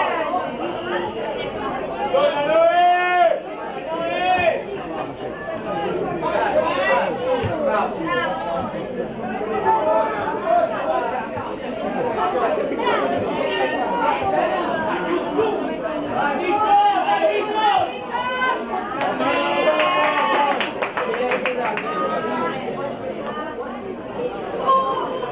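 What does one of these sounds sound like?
Young boys shout to each other outdoors.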